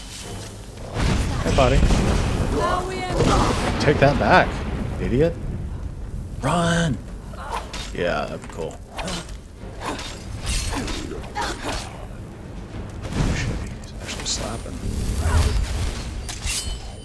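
Magic blasts crackle and roar in a fight.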